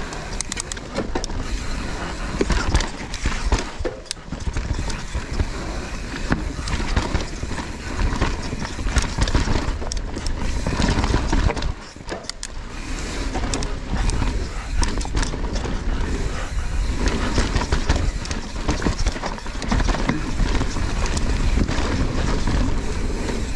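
A bike's frame and chain rattle and clatter over bumps.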